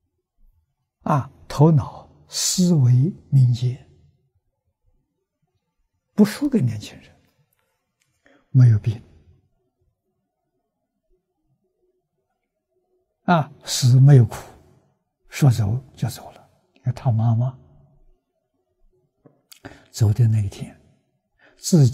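An elderly man speaks calmly and warmly into a close microphone, in short phrases with pauses.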